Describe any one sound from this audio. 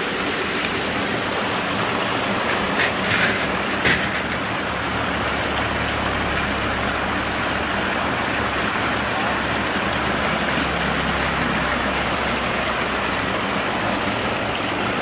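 A concrete mixer rumbles steadily in the background.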